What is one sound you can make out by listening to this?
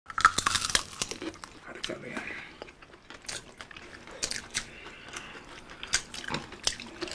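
Crispy food crunches loudly in chewing mouths close to a microphone.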